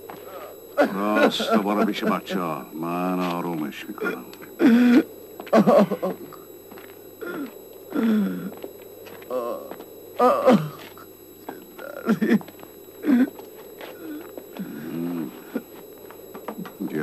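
A man speaks with feeling, close by.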